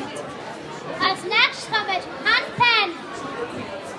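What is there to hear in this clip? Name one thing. A young girl speaks loudly into a microphone over loudspeakers.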